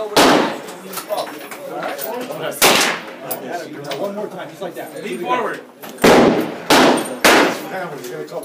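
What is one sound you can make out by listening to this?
Handgun shots bang loudly, with sharp echoes.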